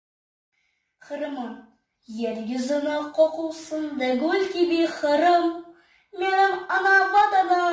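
A young boy sings clearly, close up.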